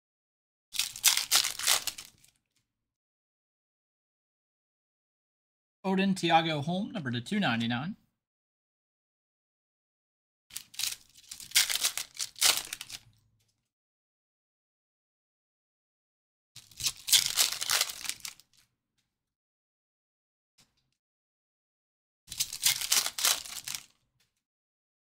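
Foil card wrappers crinkle and tear open in bursts.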